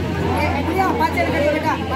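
A woman speaks loudly with animation nearby.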